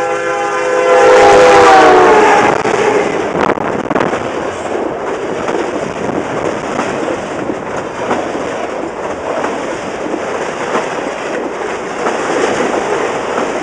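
A freight train rumbles and clatters loudly past, close by.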